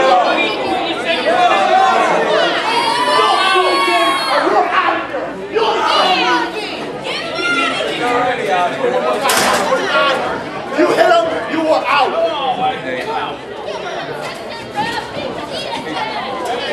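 A crowd of spectators shouts and cheers in a hall.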